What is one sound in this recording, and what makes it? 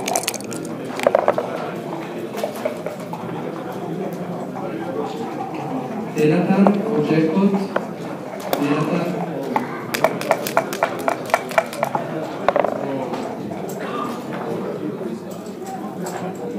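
Game pieces click on a wooden board.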